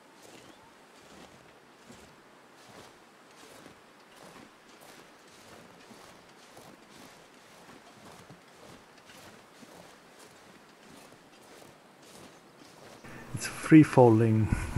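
Footsteps crunch steadily through deep snow.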